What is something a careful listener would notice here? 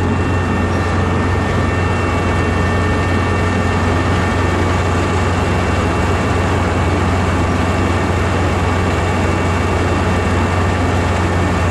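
Rice stalks rustle as a harvester cuts through them.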